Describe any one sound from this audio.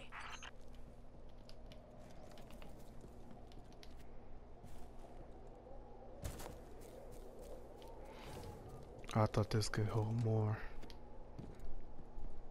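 Footsteps crunch softly over sand.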